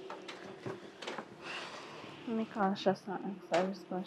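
A plastic chair scrapes and creaks as someone sits down on it.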